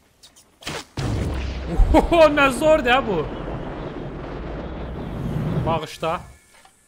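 An arrow whooshes steadily through the air.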